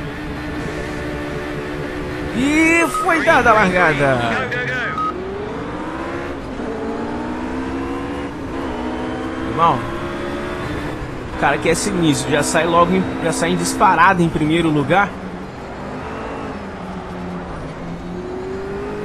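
A racing car engine revs up and down with rising and falling pitch.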